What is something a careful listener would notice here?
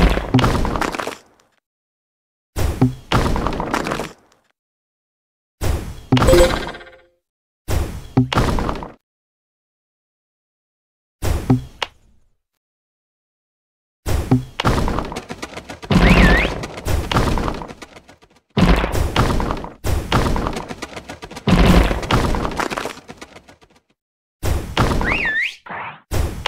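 Bubbles pop and burst with bright game chimes.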